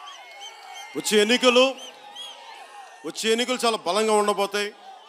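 A man speaks loudly through a microphone and loudspeakers outdoors.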